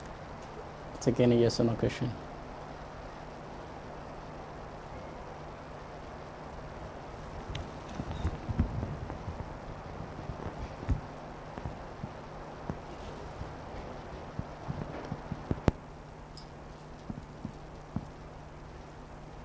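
A man speaks at a distance in a room.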